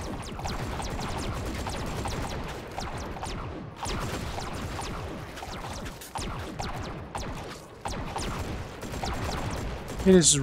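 A rapid burst of gunfire rattles on and off.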